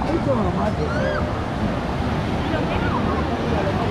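Small waves wash onto the shore nearby.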